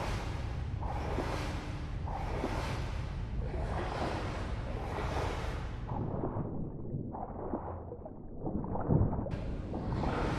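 Water swishes and churns with swimming strokes, muffled as if heard underwater.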